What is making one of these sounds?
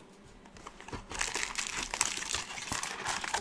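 A foil wrapper crinkles as hands tear it open.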